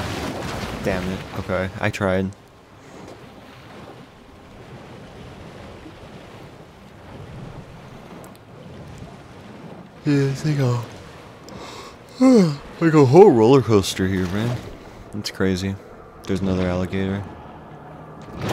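Water splashes softly as an alligator swims.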